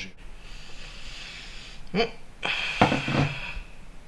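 A glass bowl is set down on a table with a clunk.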